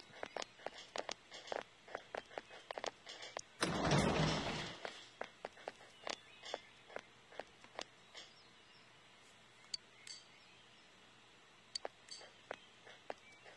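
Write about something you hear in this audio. A young woman talks quietly into a microphone.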